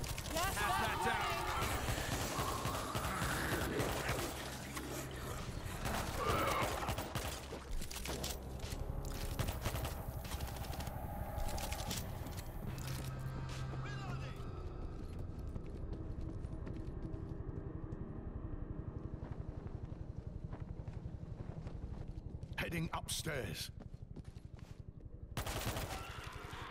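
Gunfire rattles in bursts.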